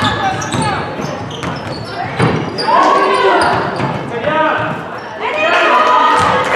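Sneakers squeak sharply on a hard court floor in an echoing hall.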